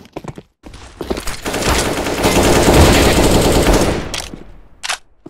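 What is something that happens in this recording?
Rifle shots fire in a rapid burst.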